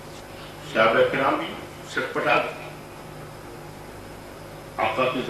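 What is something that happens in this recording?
An elderly man speaks forcefully into a microphone, heard through a loudspeaker.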